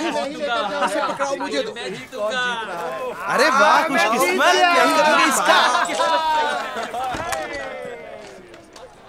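A group of men shout and laugh boisterously.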